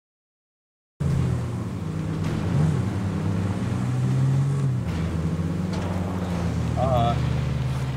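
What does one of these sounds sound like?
An engine drones steadily.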